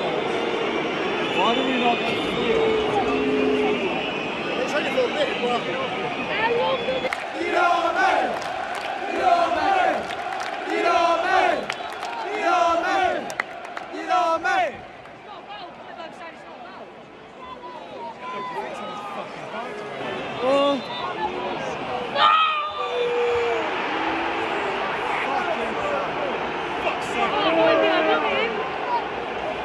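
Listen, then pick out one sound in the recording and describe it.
A large stadium crowd sings loudly in a big echoing space.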